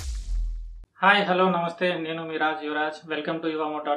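A man speaks calmly and close to the microphone.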